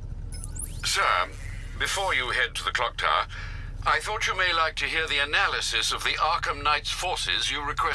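An elderly man speaks calmly through a video call.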